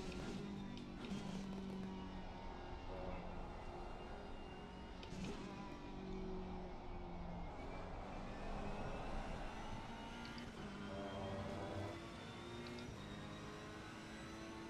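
A race car engine roars and revs up and down through gear changes.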